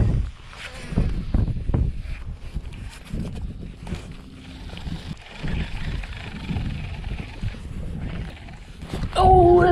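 A fishing reel clicks as it is cranked.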